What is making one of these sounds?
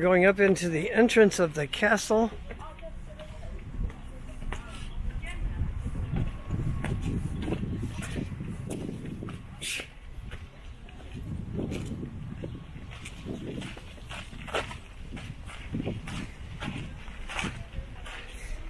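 Footsteps scuff and tap on stone steps and ground.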